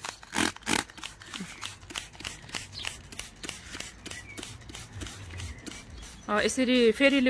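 A spray bottle hisses in quick short bursts.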